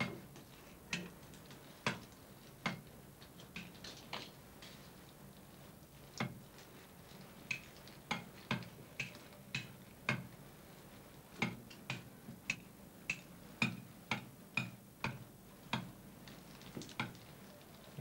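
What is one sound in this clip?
Sharp knocks and clicks of a hand tool come at irregular moments.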